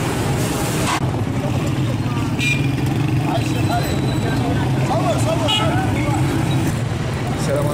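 Motorcycle engines run nearby outdoors.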